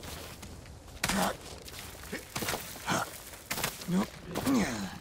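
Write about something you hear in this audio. A climber's hands and feet scrape and knock against rock.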